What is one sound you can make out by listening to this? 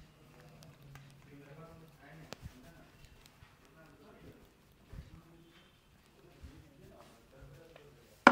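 A brush sweeps softly over a beard.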